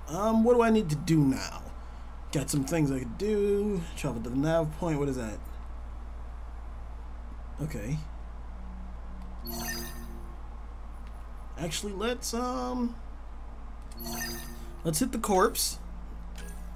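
A young man talks casually into a headset microphone.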